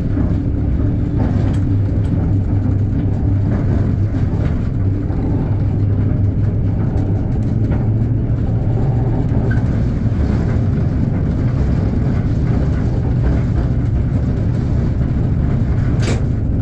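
A locomotive engine rumbles steadily up close.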